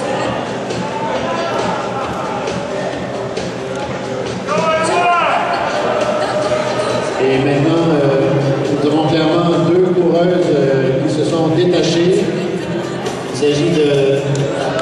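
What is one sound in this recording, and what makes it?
A crowd of spectators cheers and shouts in a large echoing hall, growing louder midway.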